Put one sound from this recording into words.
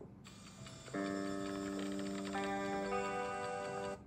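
Cheerful game music plays through a small tablet speaker.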